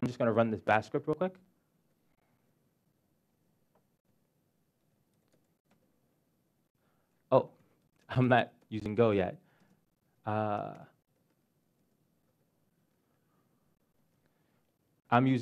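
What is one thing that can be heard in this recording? A young man talks calmly into a microphone, in short bursts.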